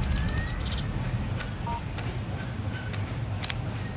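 Menu selections click and beep.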